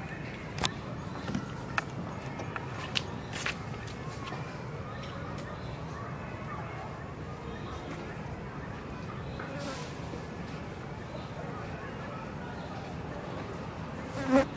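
A small monkey nibbles and chews food quietly.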